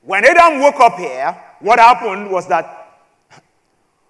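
A man speaks with emphasis into a microphone.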